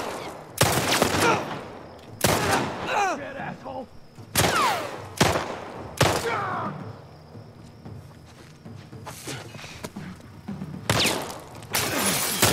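A young man talks with animation through a headset microphone.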